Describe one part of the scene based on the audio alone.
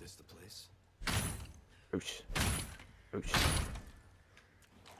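A wooden door is kicked and bangs open with heavy thuds.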